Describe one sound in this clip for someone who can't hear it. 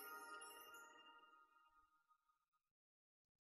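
A shimmering magical chime rings out and slowly fades.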